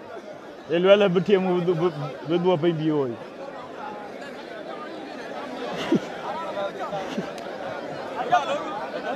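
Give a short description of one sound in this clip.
A large crowd murmurs in the distance.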